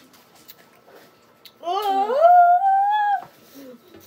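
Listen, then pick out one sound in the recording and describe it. A young girl slurps a drink through a straw.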